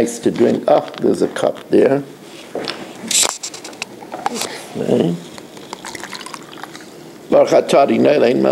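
A plastic water bottle crinkles as it is handled.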